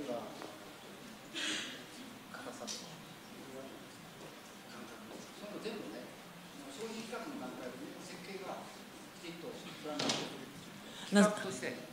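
An elderly man talks quietly.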